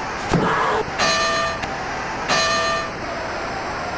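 A boxing bell rings twice.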